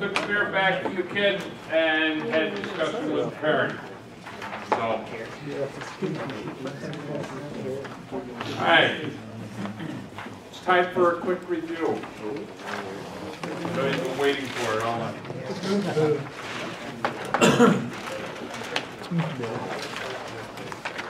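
An elderly man speaks calmly to a room, slightly echoing.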